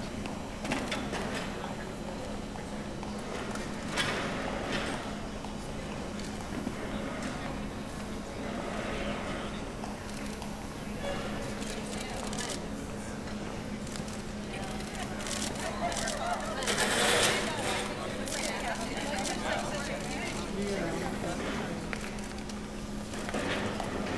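A crowd murmurs in the background of a large echoing hall.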